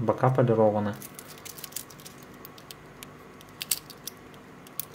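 A metal watch clasp clicks and snaps as it is opened and closed.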